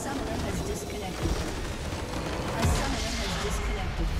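A huge crystal shatters with a loud crash.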